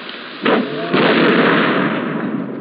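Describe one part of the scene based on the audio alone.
An explosion booms with a loud roar.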